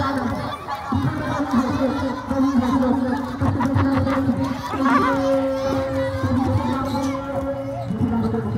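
A crowd of young spectators chatters and calls out outdoors.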